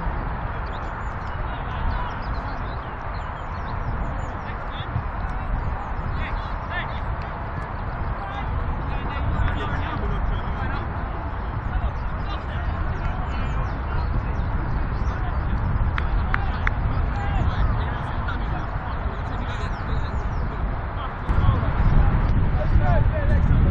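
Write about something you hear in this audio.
Young men talk and call out to each other on an open field.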